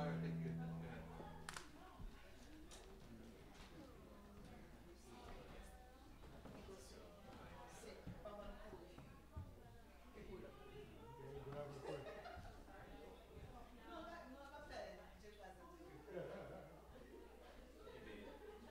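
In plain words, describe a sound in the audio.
People murmur quietly in an echoing hall.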